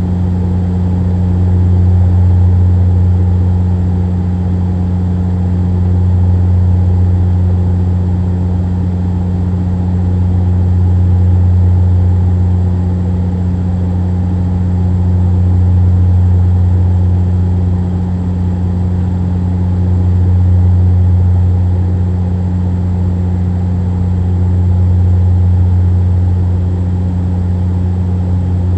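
A jet engine drones steadily in a low hum that swells and eases slowly.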